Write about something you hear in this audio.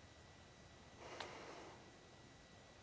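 A small device rustles as it is picked up and handled.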